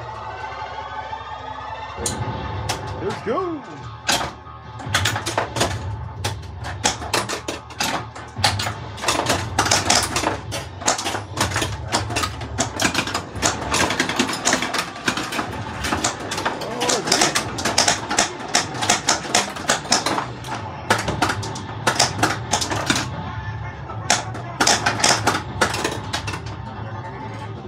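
A pinball machine plays loud electronic music and sound effects.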